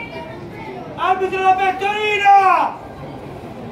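A young man gives a long, loud shout nearby.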